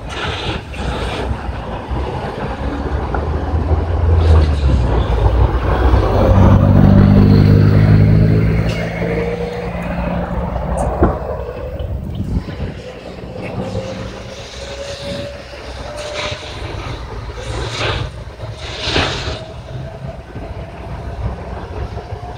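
A large fire roars and crackles nearby in the open air.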